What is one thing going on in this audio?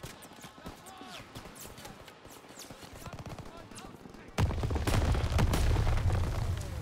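Gunfire crackles in rapid bursts, growing loud and heavy.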